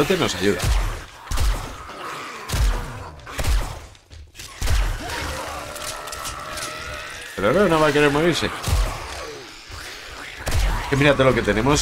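Gunshots fire in loud single blasts.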